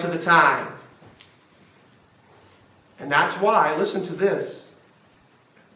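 A man preaches with emphasis, in short bursts, in a room with a slight echo.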